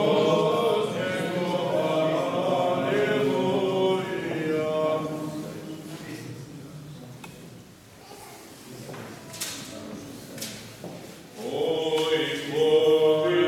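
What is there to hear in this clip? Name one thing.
A man chants in a steady sung voice, echoing in a large room.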